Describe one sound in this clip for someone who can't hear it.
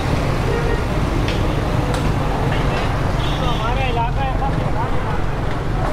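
A crowd of men chatters nearby outdoors.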